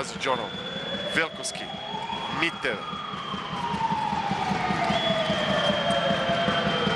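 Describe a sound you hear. A crowd roars and cheers steadily in a large echoing hall.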